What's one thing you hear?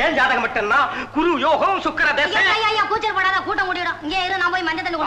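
A man sings loudly and playfully.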